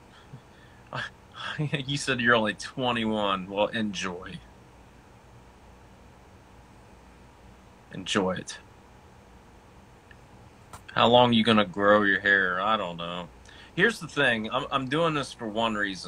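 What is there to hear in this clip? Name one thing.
A man talks casually and close to a phone microphone, with pauses.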